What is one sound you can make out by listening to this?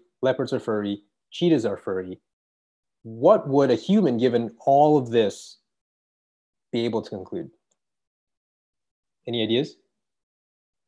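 A man speaks calmly over an online call, explaining.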